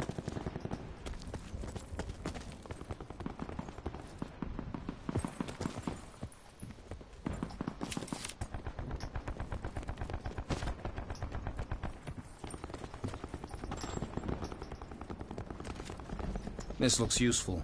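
Quick footsteps thud on hard ground and stone steps.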